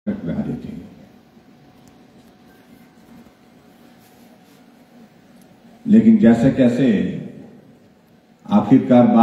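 An elderly man speaks through a microphone and loudspeakers in a large hall, pausing between phrases.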